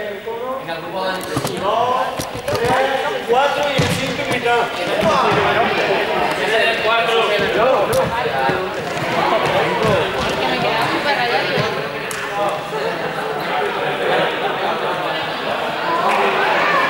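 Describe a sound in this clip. Young people talk and call out to each other in a large echoing hall.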